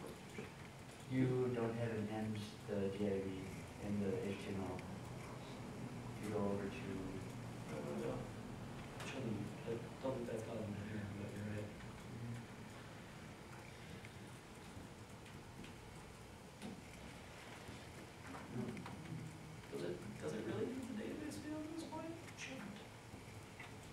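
A man speaks calmly to a room, with pauses.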